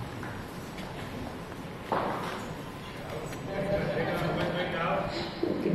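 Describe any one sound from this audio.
A group of people murmur and chatter.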